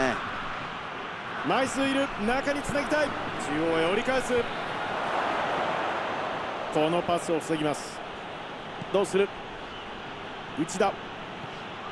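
A large stadium crowd roars steadily, swelling for a moment and then settling.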